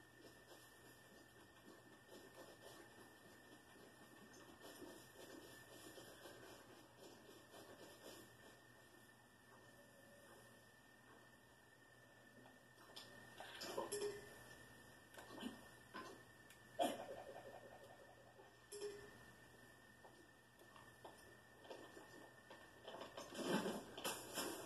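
Video game sound effects play from a television.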